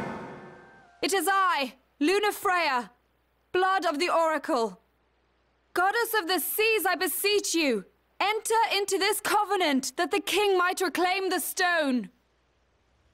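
A young woman speaks solemnly and clearly, close by.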